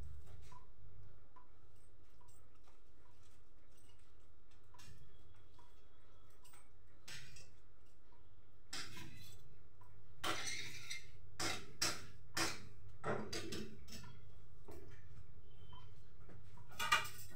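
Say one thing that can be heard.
A knife taps and chops on a cutting board.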